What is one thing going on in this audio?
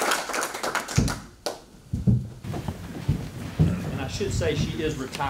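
Chairs scrape and thump as people sit down.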